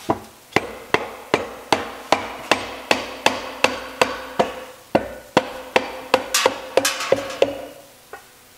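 A rubber mallet thumps repeatedly and quickly on a metal casing.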